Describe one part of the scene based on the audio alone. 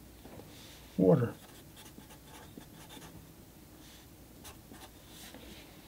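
A marker pen scratches softly on paper.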